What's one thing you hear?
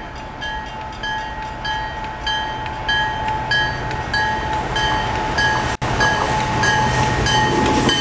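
A train rumbles closer along the tracks, growing louder.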